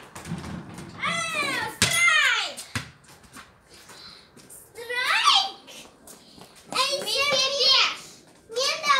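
A young girl shouts and squeals excitedly nearby.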